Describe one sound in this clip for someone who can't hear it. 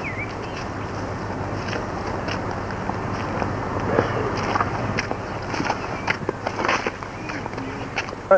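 Footsteps walk along a pavement outdoors.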